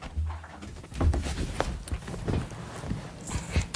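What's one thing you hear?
A man sits down on a padded chair with a soft rustle of clothing.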